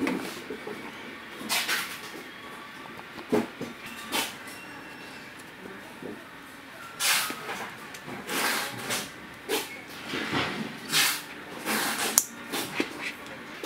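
Plastic buckle clips click shut and snap open.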